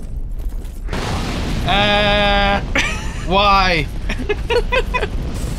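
A fireball bursts with a roaring whoosh.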